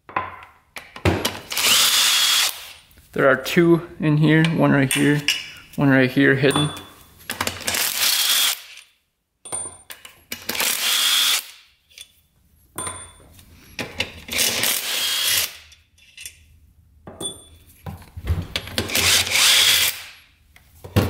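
A cordless power tool spins bolts out of a metal engine case in short bursts.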